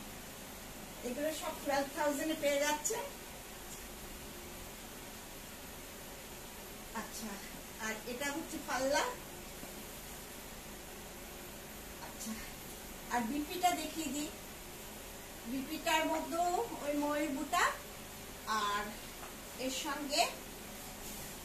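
A woman speaks calmly and close by, in short bursts with pauses.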